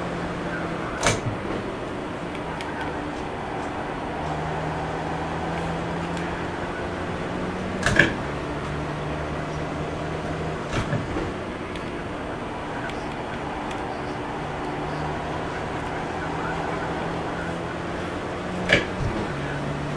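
Gear shift paddles click sharply now and then.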